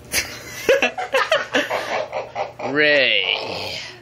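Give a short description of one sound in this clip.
A young man laughs nearby.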